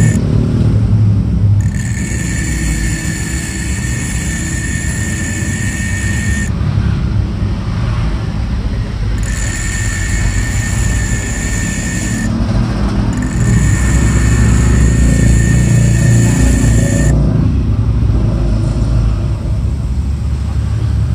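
An electric motor hums steadily throughout.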